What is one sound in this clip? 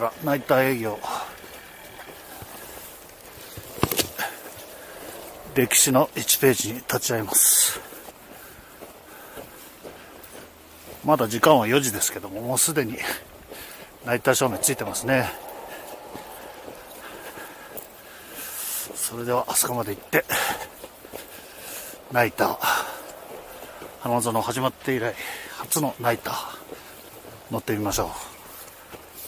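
A person speaks close by with animation, in short bursts.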